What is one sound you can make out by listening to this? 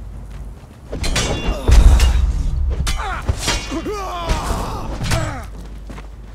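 A sword strikes heavily in a fight.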